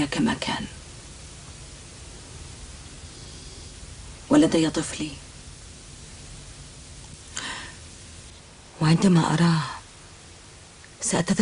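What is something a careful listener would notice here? A man speaks quietly and calmly, close by.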